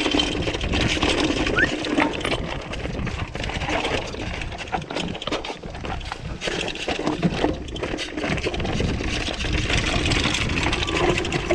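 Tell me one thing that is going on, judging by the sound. A bike's frame and chain clatter over bumps.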